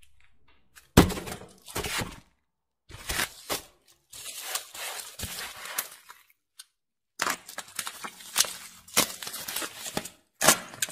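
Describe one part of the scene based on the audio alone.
Bubble wrap crinkles and rustles as it is handled.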